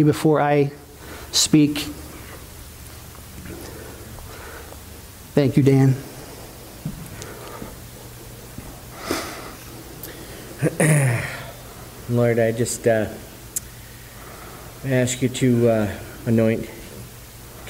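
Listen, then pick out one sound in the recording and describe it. A man speaks calmly through a microphone in a room with a slight echo, pausing often.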